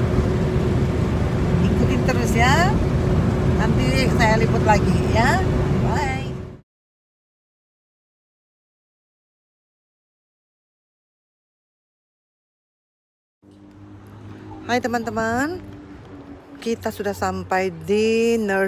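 A middle-aged woman talks with animation close to the microphone.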